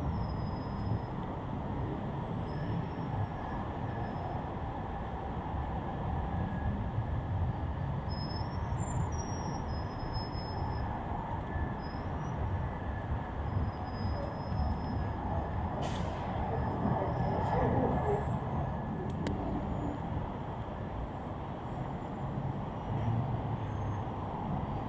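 Traffic rumbles steadily on a nearby city street, heard outdoors.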